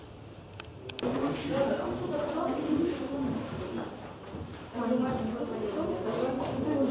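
Many men and women chatter at once in an echoing space.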